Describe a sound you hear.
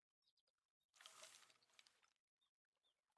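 A fishing rod swishes and line whizzes out in a cast.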